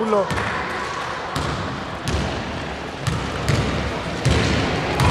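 A basketball bounces on a wooden court in a large echoing hall.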